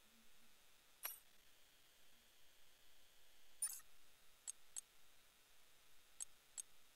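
Short electronic clicks sound as menu choices change.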